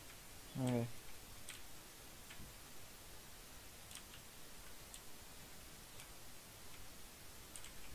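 Leaves crunch softly as blocks break.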